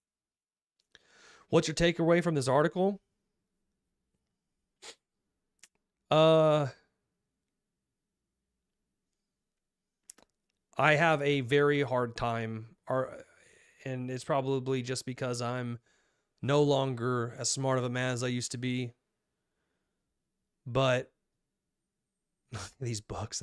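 A young man speaks calmly and closely into a microphone, in bursts with pauses.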